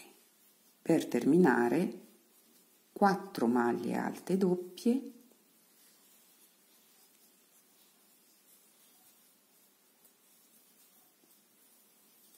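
A crochet hook softly rustles through yarn.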